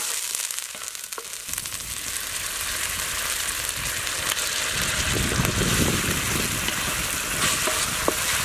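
Rice sizzles and crackles in a hot pan.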